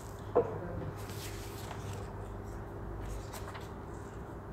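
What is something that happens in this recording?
Papers rustle and shuffle.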